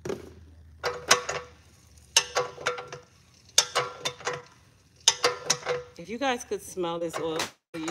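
Oil trickles from a filling machine into a jar.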